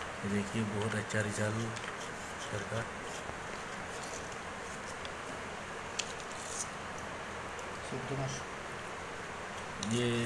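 Dry wood pieces tap and scrape softly as they are handled.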